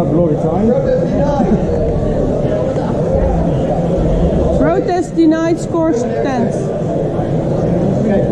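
Many men and women chatter throughout a large echoing hall.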